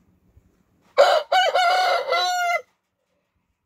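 A rooster crows close by.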